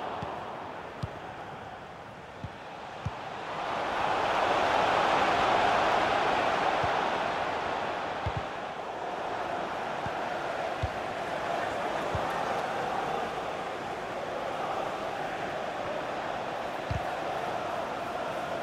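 A stadium crowd roars steadily, swelling louder and then settling.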